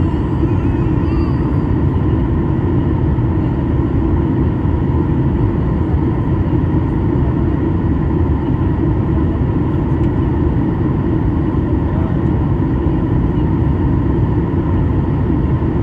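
A jet engine roars steadily, heard from inside an airliner cabin.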